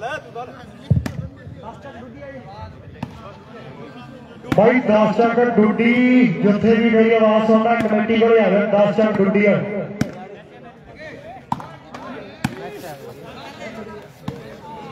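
A volleyball thumps off players' hands.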